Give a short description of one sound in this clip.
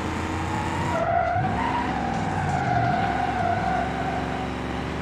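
Tyres squeal as a car skids.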